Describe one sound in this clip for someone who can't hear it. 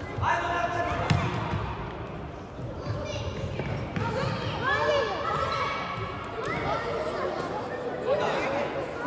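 Young boys shout and call out to each other in a large echoing hall.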